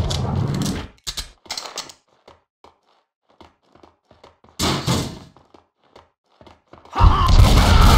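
Footsteps run up hard stone stairs.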